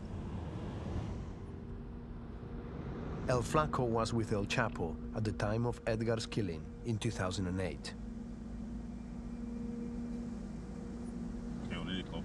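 A car engine hums steadily from inside the car as it drives.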